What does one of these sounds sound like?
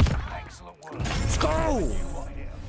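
A young man shouts excitedly into a microphone.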